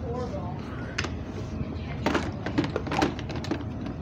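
Hard objects knock and clatter close by as they are handled.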